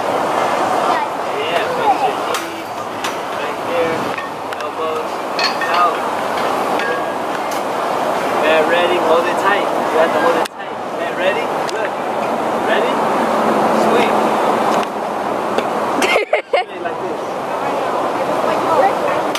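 A man talks calmly and encouragingly nearby.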